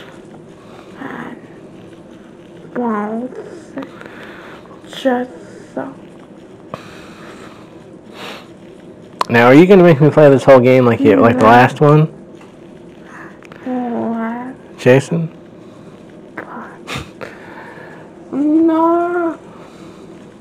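A young boy talks and exclaims, close to a microphone.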